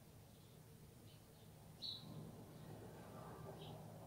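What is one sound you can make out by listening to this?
A paintbrush softly brushes across canvas.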